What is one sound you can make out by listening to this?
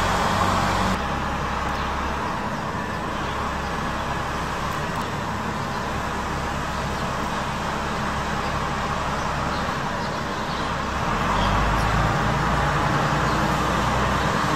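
Rain patters steadily on wet pavement outdoors.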